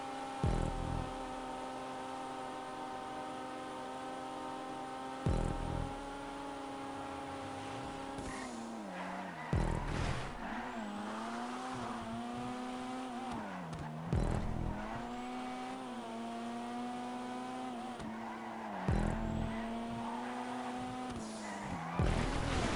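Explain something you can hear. A car's gears shift with a sharp thump every few seconds.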